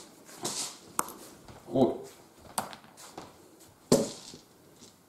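Dice rattle in a hand and clatter into a tray.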